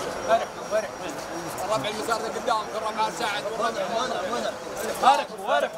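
Men greet one another and talk, close by.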